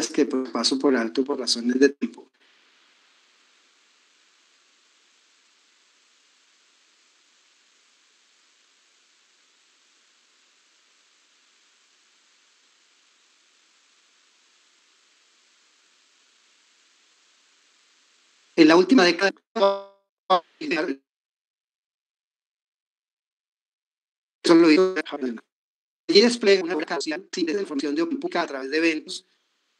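A man speaks calmly over an online call, with long pauses.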